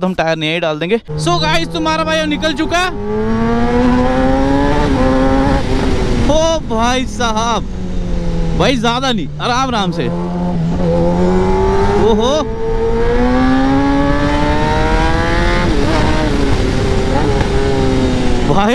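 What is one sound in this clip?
A sports motorcycle engine roars loudly, revving up and down through the gears.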